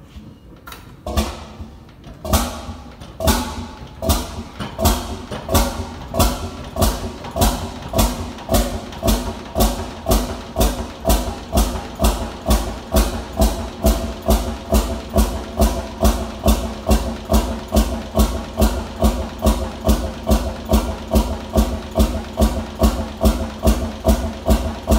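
An old single-cylinder engine starts up and chugs with loud, regular beats that quicken and settle into a steady rhythm.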